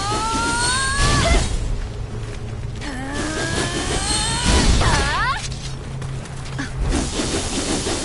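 Heavy blows thud.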